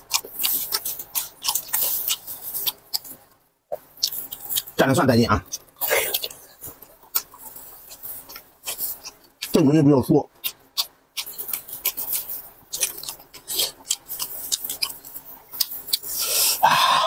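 A man chews and slurps food loudly, close up.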